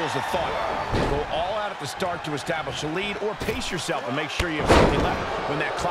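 Heavy thuds land as bodies slam onto a wrestling ring.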